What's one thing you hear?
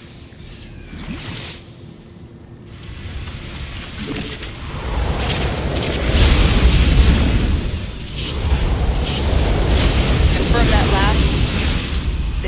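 Rapid gunfire rattles in a battle.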